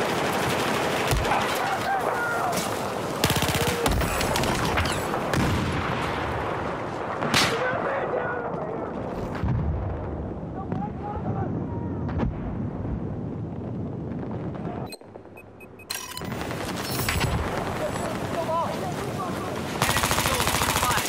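Rapid gunshots fire.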